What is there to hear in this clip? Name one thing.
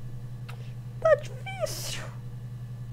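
A young woman makes a short sound close by.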